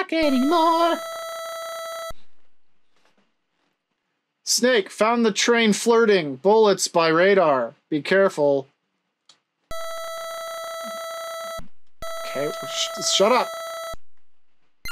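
Electronic beeps tick steadily as a game message types out.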